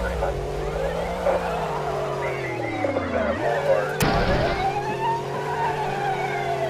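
A racing car engine hums and changes pitch as the car speeds up and slows down.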